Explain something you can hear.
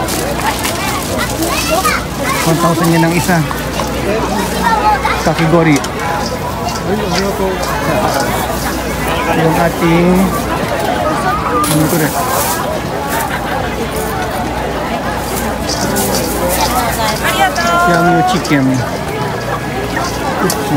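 Many people chatter and call out all around in a busy outdoor crowd.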